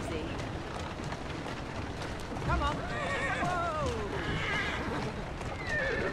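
Wooden carriage wheels rumble over cobblestones.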